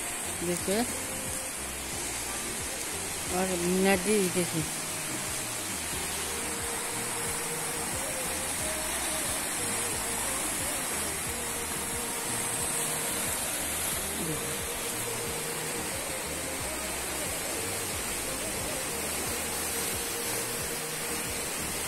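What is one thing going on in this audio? A fast, muddy river rushes and churns steadily.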